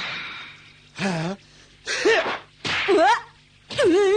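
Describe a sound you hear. A young boy shouts with effort.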